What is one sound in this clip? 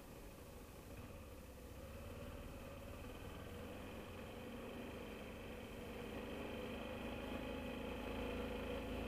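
A motorcycle engine hums steadily and slowly rises in pitch as the bike speeds up.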